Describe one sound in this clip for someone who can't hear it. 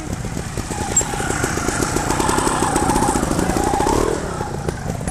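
A motorcycle engine idles and revs.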